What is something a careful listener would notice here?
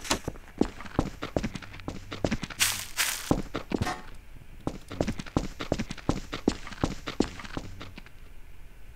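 Footsteps thud quickly and steadily on pavement.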